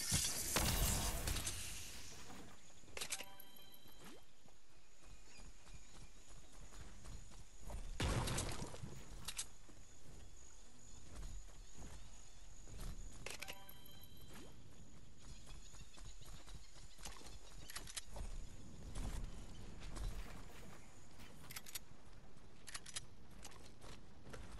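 Footsteps patter quickly over ground.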